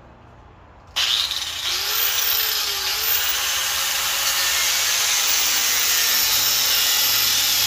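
An angle grinder whines steadily as it sands wood.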